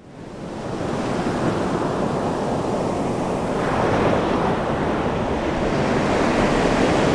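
Waves break and foam rushes over the shore.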